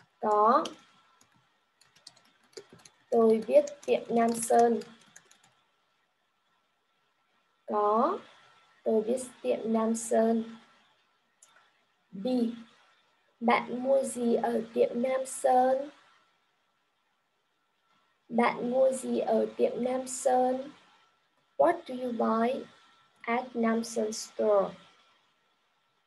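A young woman speaks slowly and clearly over an online call, reading out in short phrases.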